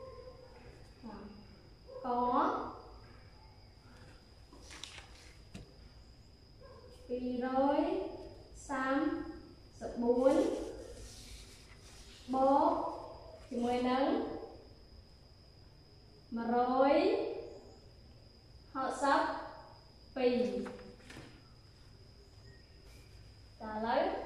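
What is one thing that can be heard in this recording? A young woman speaks slowly and clearly in short drawn-out phrases, as if teaching.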